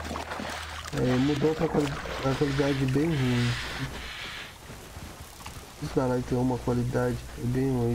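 A young man talks calmly into a microphone, close by.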